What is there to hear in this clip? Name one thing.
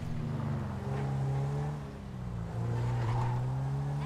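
Tyres squeal briefly on the road as a car turns.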